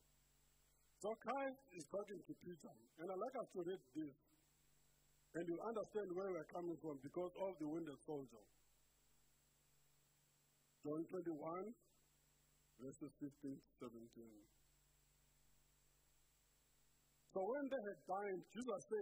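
A man speaks calmly into a microphone in a large echoing hall, with pauses between phrases.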